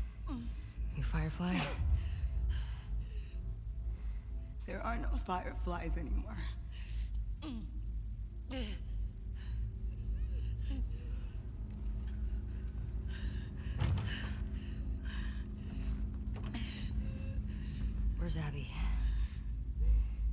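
A young woman asks a question in a low, tense voice.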